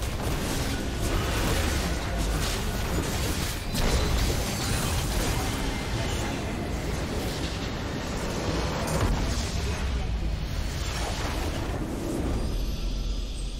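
Loud clashing game spells and blasts ring out in a busy fight.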